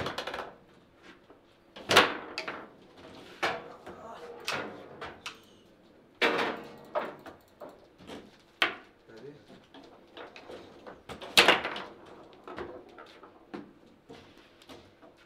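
Table football rods clatter and the ball knocks sharply against the players and walls.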